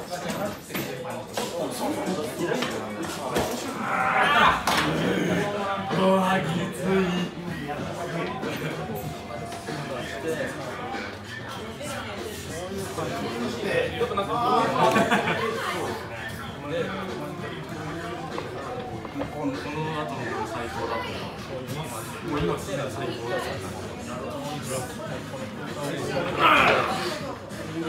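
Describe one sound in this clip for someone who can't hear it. A crowd of young men and women talks and calls out over one another.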